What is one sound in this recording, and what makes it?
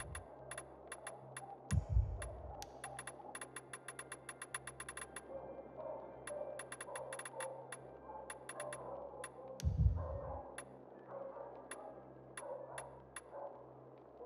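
Short interface clicks tick as a game menu is scrolled.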